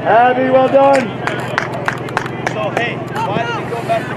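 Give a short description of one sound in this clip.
A crowd of spectators claps and cheers in the distance.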